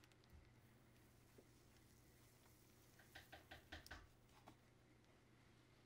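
Thin metal foil crinkles and rustles.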